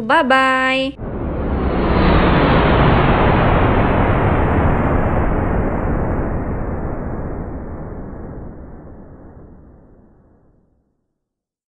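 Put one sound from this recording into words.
A rocket engine roars and slowly fades away.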